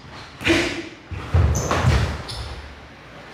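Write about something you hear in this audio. Cloth snaps and feet thump on a wooden floor.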